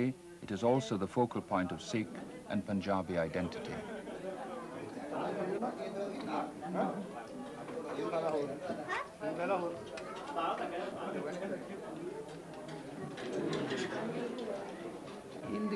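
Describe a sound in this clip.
Spoons clink against metal plates.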